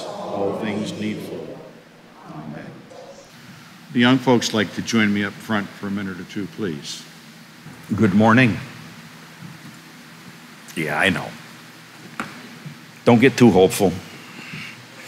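A middle-aged man speaks into a microphone in an echoing hall.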